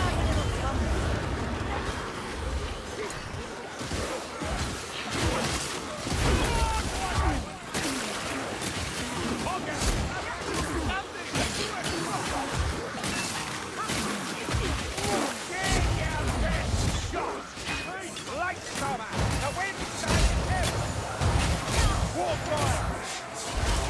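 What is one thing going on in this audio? Blades hack and slash into flesh in quick, repeated blows.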